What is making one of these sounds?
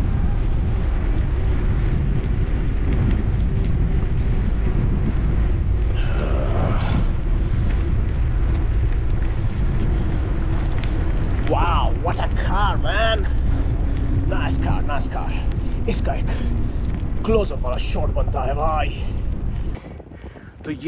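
Wind buffets a microphone while riding a bicycle outdoors.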